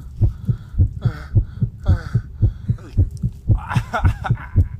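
A young man cries out loudly close by.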